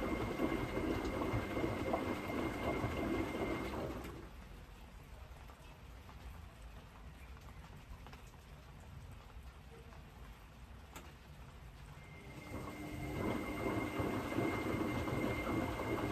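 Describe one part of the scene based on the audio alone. A washing machine drum turns, sloshing water and laundry around.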